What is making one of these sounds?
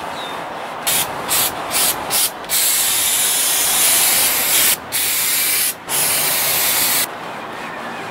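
Spray adhesive hisses from a can in bursts.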